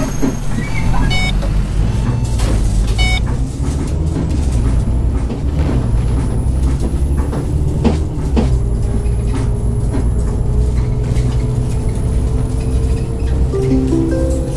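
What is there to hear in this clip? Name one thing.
A bus engine rumbles louder as the bus pulls away and drives on.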